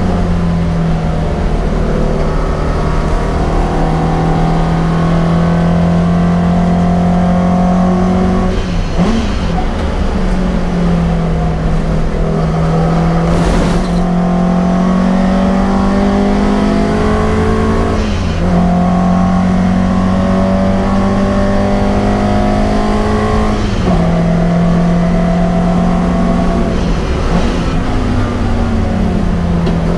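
A car engine roars loudly from inside the cabin, rising in pitch and dropping at each gear change.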